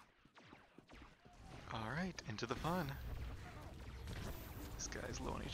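Blaster shots and energy blasts crackle in a noisy fight.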